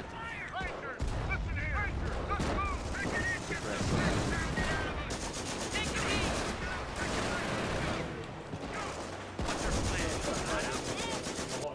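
Gunfire and explosions crackle and boom from a battle.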